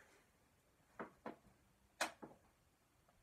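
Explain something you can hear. Dumbbell plates clink and knock.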